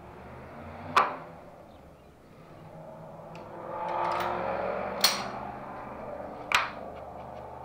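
Metal tools clink and knock sharply against wood.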